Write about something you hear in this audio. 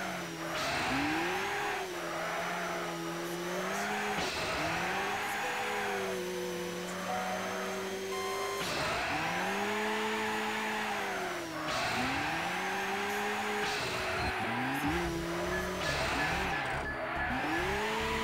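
Tyres screech through the corners.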